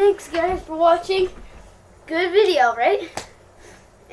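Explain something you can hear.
A young boy shouts and sings out with high excitement close by.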